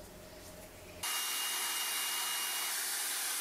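An angle grinder whines as it spins.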